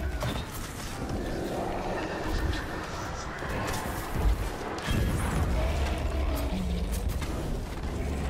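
A huge creature stomps heavily across the ground.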